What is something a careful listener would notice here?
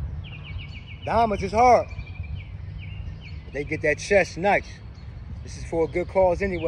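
A man speaks loudly near the microphone.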